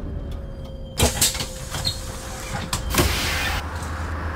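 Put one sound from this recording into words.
Bus doors open with a hiss of air.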